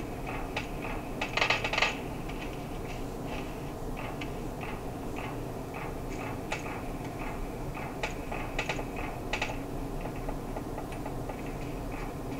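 Video game sounds play from a small phone speaker.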